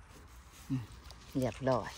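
A knife cuts through a mushroom stem.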